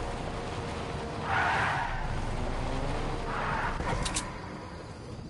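A car engine hums at low speed.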